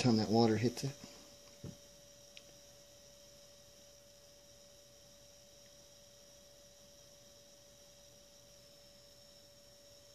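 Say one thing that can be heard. Water swirls gently in a plastic pan.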